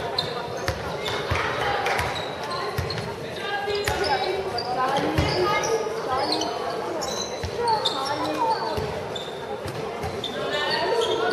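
A handball bounces on the floor with dull thuds.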